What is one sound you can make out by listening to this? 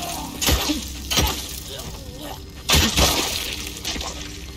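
Heavy blows thud in a close fight.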